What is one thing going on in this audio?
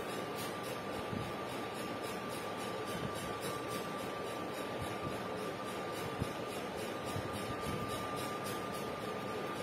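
A marker squeaks faintly across a whiteboard.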